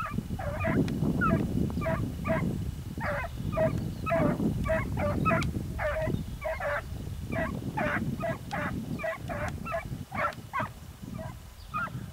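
A pack of hunting hounds bays in the distance outdoors.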